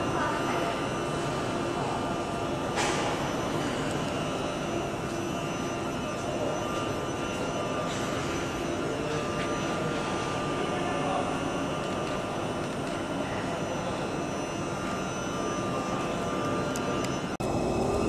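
An underground train rumbles as it pulls away and picks up speed.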